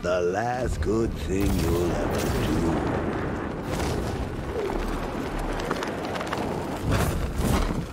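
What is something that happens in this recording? Wind rushes past during a fast glide through the air.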